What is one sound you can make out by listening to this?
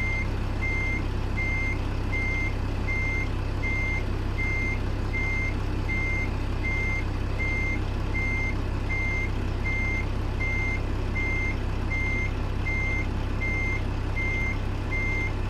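A truck's reversing alarm beeps in a steady, even rhythm.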